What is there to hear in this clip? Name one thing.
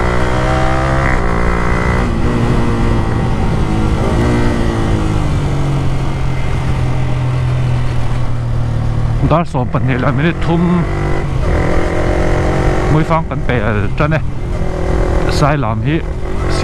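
A motorcycle engine roars steadily, then revs up and down sharply as it changes gears.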